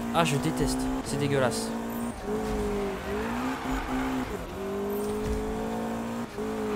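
A sports car engine roars at high revs, shifting gears as it speeds along.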